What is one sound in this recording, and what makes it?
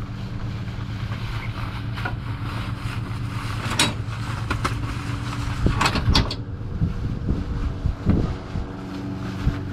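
A fabric vehicle cover rustles and thumps as it is pulled off.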